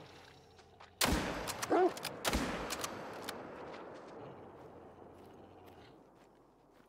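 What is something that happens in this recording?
A shotgun fires a loud blast that echoes and slowly fades.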